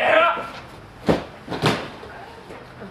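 A body thuds onto a padded mat.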